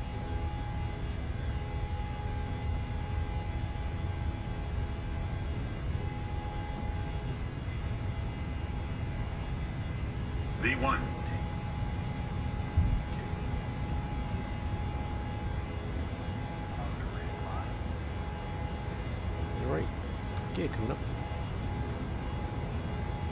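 Jet engines roar steadily as an airliner speeds along a runway.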